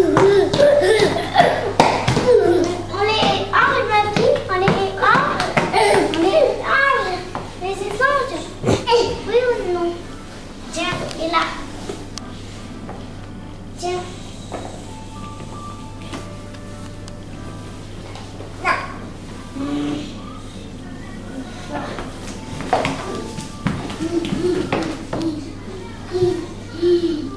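Young children chatter and squeal excitedly close by.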